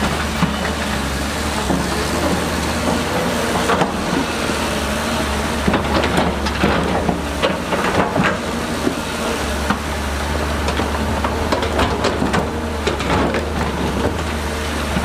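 Rocks and soil clatter and scrape as an excavator bucket digs.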